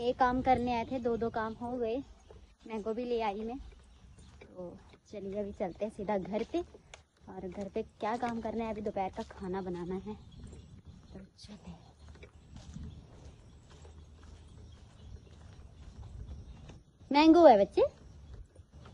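A young woman talks calmly, close to the microphone.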